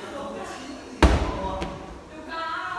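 A medicine ball thuds onto a rubber gym floor.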